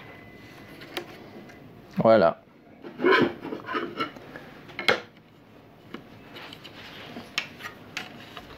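Hard plastic and metal parts click and knock against each other.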